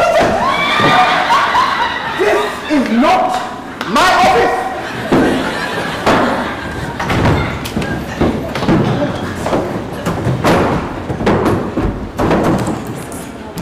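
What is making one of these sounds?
A man speaks loudly and with animation on a stage.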